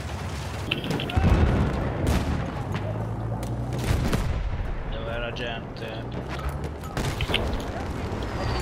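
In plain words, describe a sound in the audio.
A heavy explosion booms nearby.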